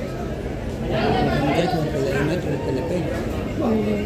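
A middle-aged man talks on a phone close by.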